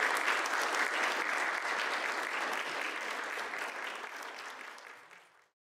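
An audience applauds in a large hall, then the clapping fades away.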